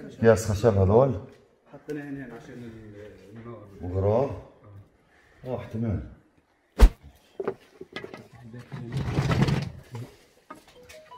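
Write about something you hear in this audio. A middle-aged man speaks up close in an upset voice.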